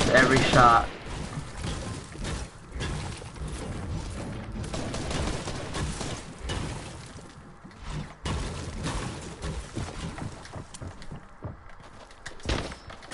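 A pickaxe strikes a wall with sharp thuds, again and again.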